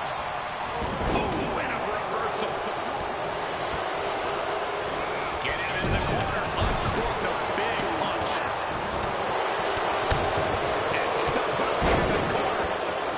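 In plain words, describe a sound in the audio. Heavy bodies thud onto a ring mat with dull booming impacts.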